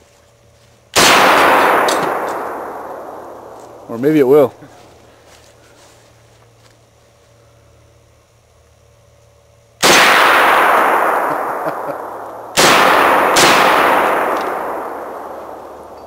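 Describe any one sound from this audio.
Rifle shots crack outdoors and echo through the woods.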